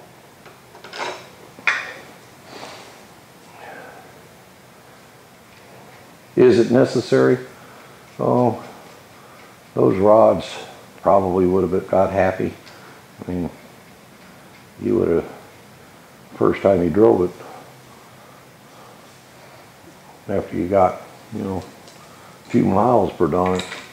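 Metal engine parts click and clink softly under hands.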